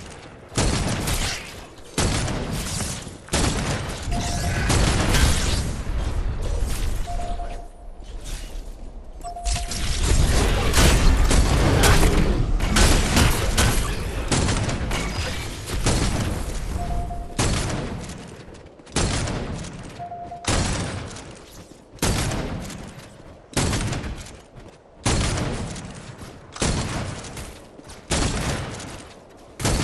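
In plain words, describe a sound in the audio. Gunfire and energy blasts crackle in a game battle.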